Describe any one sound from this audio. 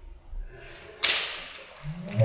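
A water balloon bursts with a sudden pop.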